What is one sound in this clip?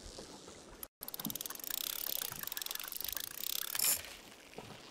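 A fishing reel whirs and clicks as its line is wound in.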